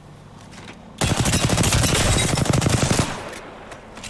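A rapid-fire gun shoots a fast burst of shots.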